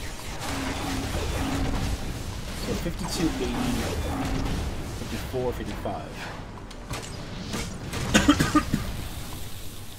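Fiery blasts and hits burst in a video game fight.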